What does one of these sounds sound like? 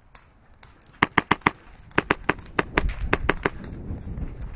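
A paintball gun fires rapid bursts of sharp pops close by.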